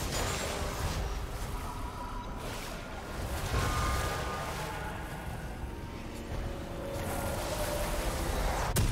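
Fantasy game spell effects whoosh and chime.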